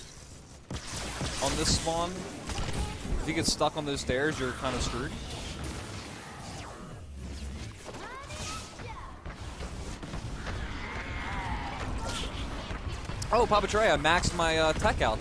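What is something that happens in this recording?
Gunfire and blasts crackle from a video game.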